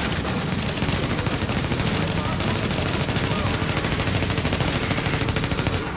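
Explosions boom and roar with fire.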